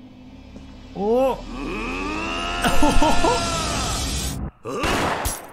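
A young man screams in terror.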